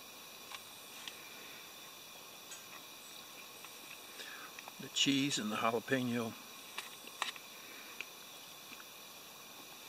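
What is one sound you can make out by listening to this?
A knife scrapes and cuts through soft, damp flesh.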